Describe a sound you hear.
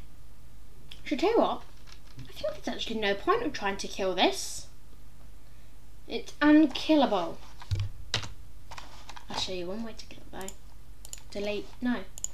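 A boy talks with animation, close to a microphone.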